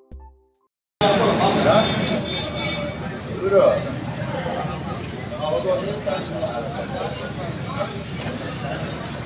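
Several men talk with one another close by, outdoors among a crowd.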